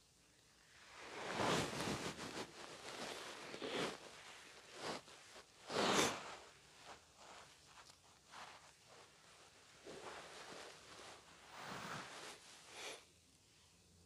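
An elderly man speaks slowly and calmly in a reverberant room.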